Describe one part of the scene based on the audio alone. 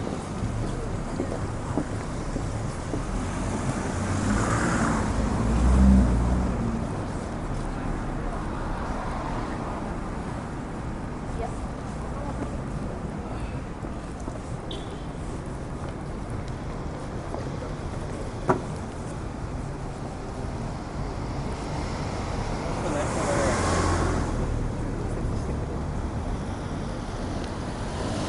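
Traffic hums steadily in the distance.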